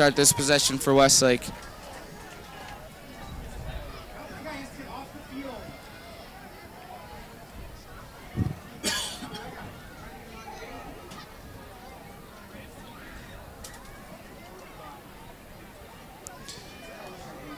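A crowd murmurs and chatters in a large open stadium.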